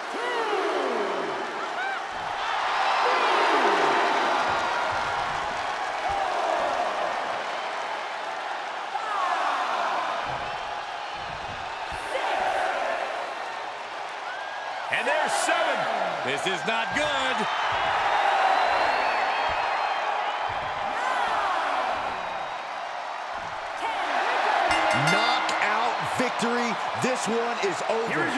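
A large crowd cheers and roars in an echoing arena.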